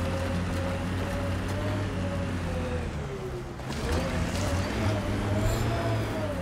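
A vehicle engine hums steadily, rising and falling in pitch as it climbs over rough ground.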